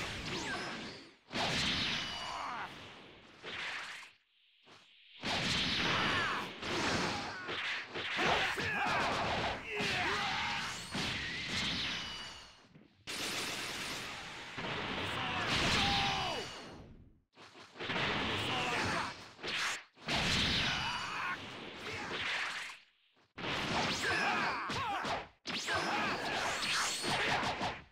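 Video game fight effects whoosh and blast in quick bursts.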